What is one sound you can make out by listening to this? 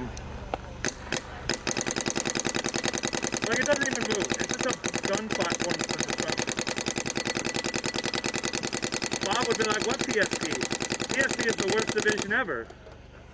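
A paintball marker fires in a fast, rapid stream of sharp pops.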